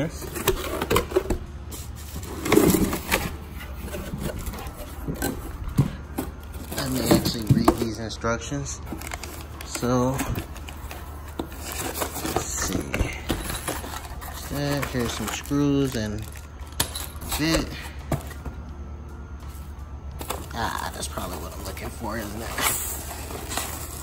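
Plastic bubble wrap crinkles and rustles.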